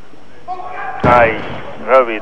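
A loaded barbell crashes down onto a wooden platform.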